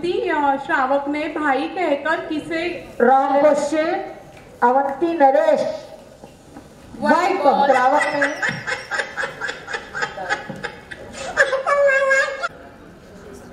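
A woman speaks with animation into a microphone, heard through loudspeakers.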